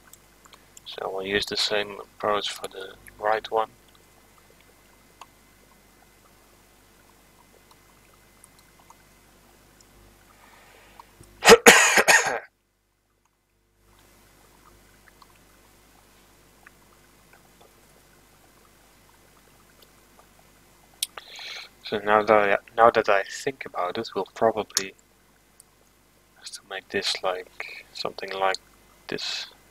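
A young man talks calmly into a close microphone, in short bursts.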